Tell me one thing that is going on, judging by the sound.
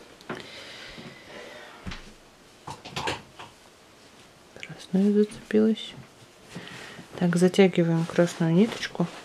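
A crochet hook softly scrapes and taps through yarn.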